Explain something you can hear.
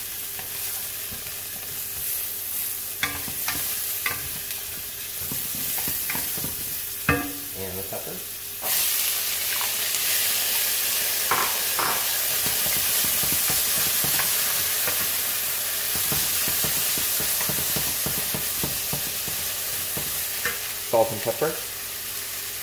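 A wooden spoon scrapes and stirs in a metal pan.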